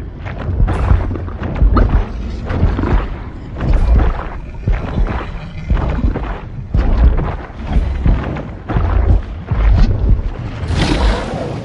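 Heavy thuds and rustling of branches repeat quickly as a creature scrambles through a tangle of sticks.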